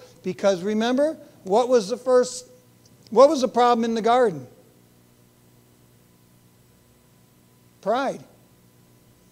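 A middle-aged man speaks with animation through a microphone, with pauses.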